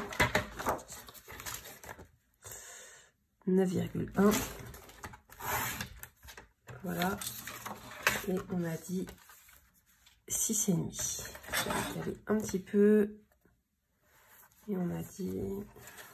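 Paper slides and rustles across a hard surface.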